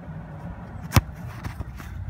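A foot kicks a ball with a sharp thump.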